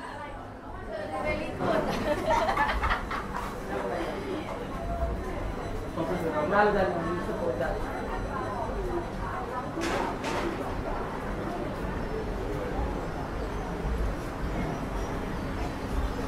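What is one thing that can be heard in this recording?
Men and women chat nearby as they walk past.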